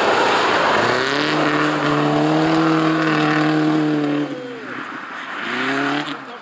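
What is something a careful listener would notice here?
A car engine roars at high revs, rising and falling in pitch.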